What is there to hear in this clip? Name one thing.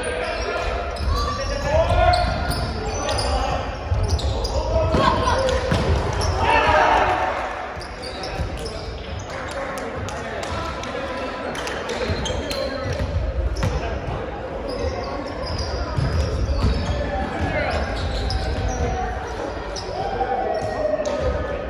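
Young men call out and talk in a large echoing gym.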